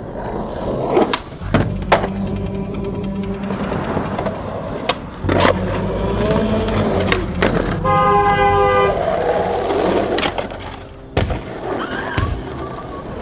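A skateboard's tail snaps sharply against concrete.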